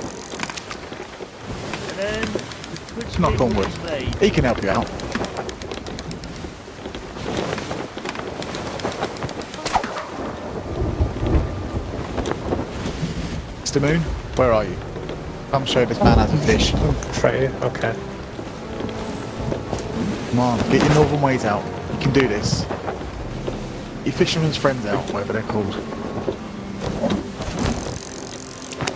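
Rough waves slosh and crash against a wooden ship.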